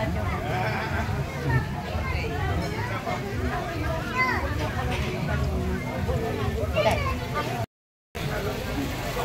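A crowd of men and women chatter all around in a large room.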